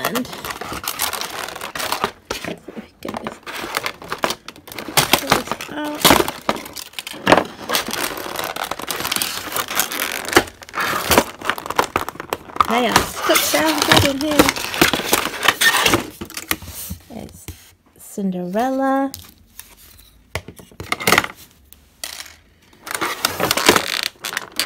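A plastic tray crinkles and crackles as it is handled.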